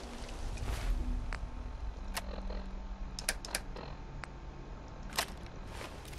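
Short electronic clicks tick now and then.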